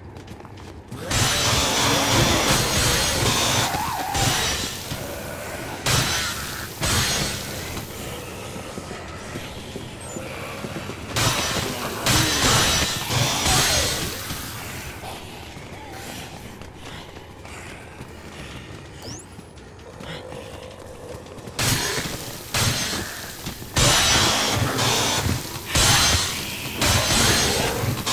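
A chainsaw revs loudly in bursts.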